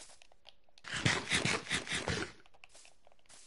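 Food is chewed with loud crunching bites.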